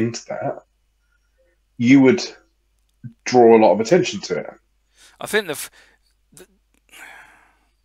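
A man talks casually through an online call, in short bursts.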